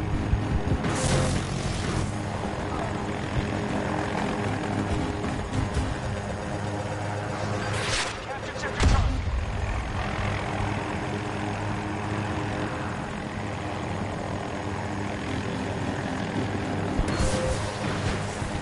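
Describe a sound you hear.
Missiles whoosh past and explode.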